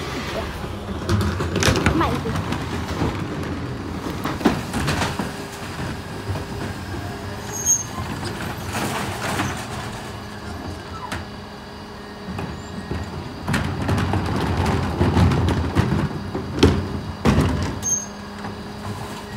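Plastic wheelie bins rumble and clatter over the road.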